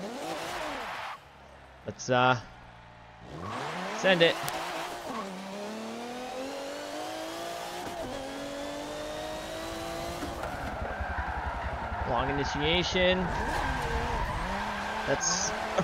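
A car engine revs hard and rises in pitch through the gears.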